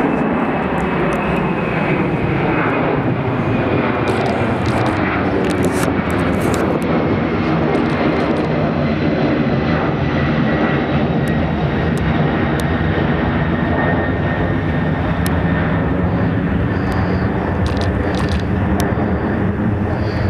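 A jet airliner roars loudly overhead, its engines whining as it passes and slowly moves away.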